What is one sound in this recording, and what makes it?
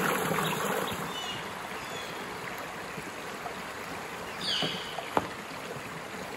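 Water trickles gently over rocks in a stream.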